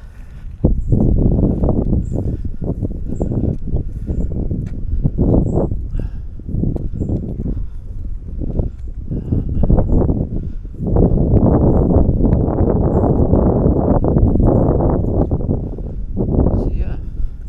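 Footsteps crunch on a grassy path.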